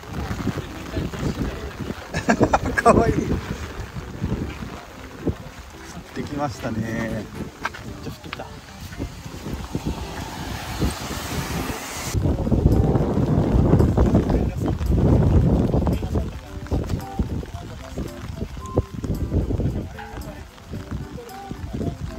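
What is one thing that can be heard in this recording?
Wind gusts roar and buffet the microphone outdoors.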